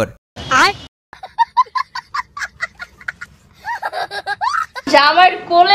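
A young child laughs and shrieks excitedly.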